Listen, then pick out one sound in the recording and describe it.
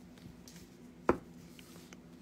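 A small plastic bag taps softly as it is set down on paper.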